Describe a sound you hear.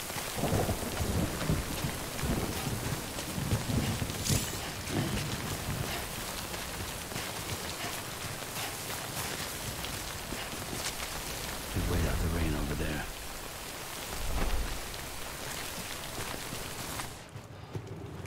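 A waterfall roars nearby.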